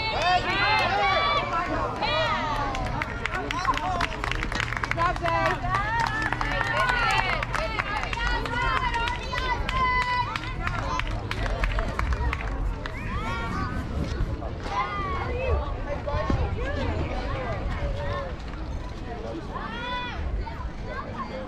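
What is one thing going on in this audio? Young children shout and call out across an open field outdoors.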